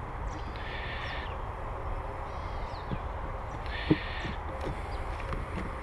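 Honeybees hum around an open hive.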